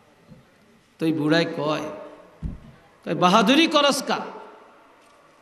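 An elderly man speaks forcefully into a microphone, in short bursts with pauses, with a slight echo.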